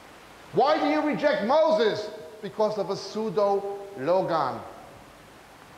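A man speaks with emphasis, heard close through a microphone.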